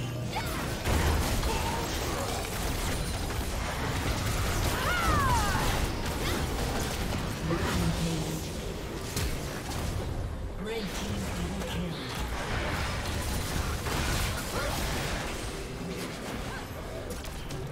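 Game spell effects whoosh and crackle in a rapid fight.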